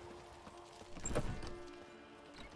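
A heavy wooden door bangs.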